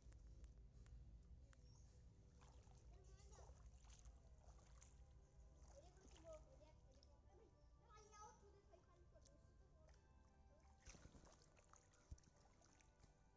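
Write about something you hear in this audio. Feet slosh and splash through shallow muddy water.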